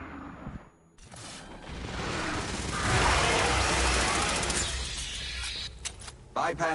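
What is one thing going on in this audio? A gun fires rapidly with loud bursts.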